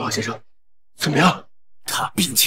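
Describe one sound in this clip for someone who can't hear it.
A man asks a question loudly and anxiously.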